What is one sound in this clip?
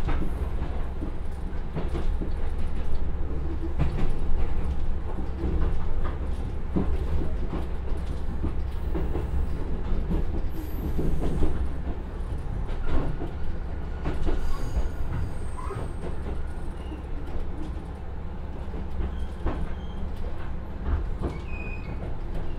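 A diesel railcar engine rumbles steadily.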